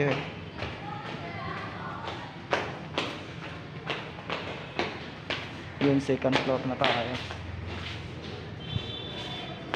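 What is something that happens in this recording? Footsteps tap down hard stairs, echoing in a stairwell.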